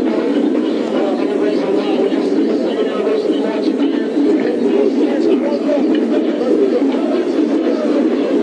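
A marching band plays brass and drums loudly outdoors.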